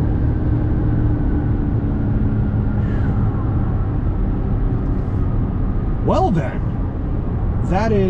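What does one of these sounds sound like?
A car's engine and road noise rumble steadily from inside the car.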